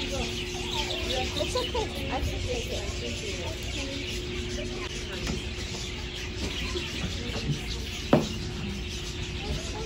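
People chatter nearby in a busy room.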